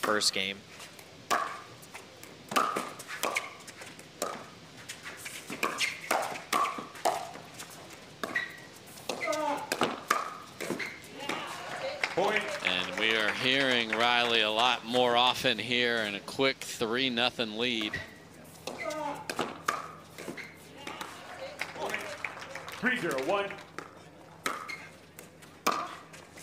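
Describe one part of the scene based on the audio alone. Pickleball paddles pop against a plastic ball in quick exchanges.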